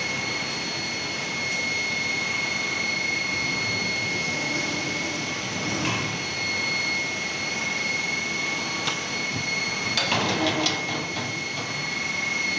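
A machine hums steadily with a high whine.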